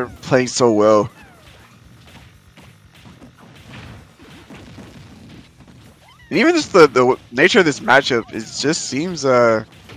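Video game fighters trade blows with punchy hit and blast effects.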